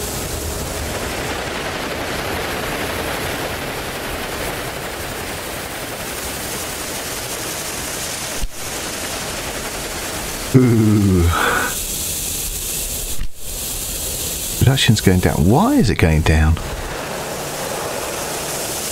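A steam locomotive chugs along the tracks.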